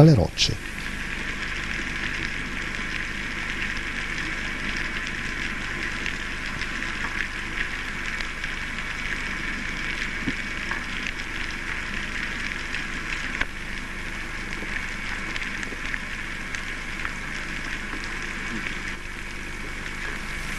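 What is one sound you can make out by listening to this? Underwater ambience crackles and hisses steadily, heard from beneath the surface.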